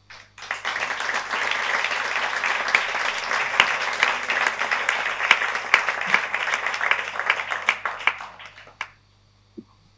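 An audience claps and applauds loudly, then the applause dies away.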